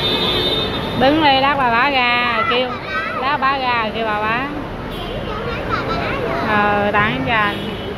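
A woman talks loudly close by.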